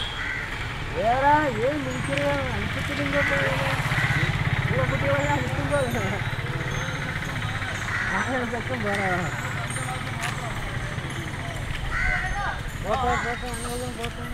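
A young child talks nearby outdoors.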